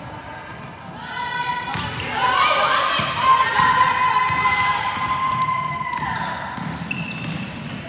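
Spectators shout and cheer.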